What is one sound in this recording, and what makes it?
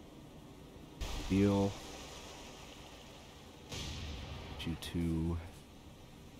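Shells splash into water.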